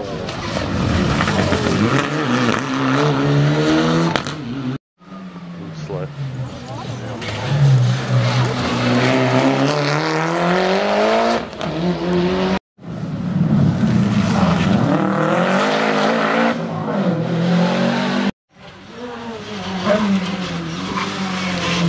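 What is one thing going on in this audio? A rally car engine revs hard and roars past, changing gears.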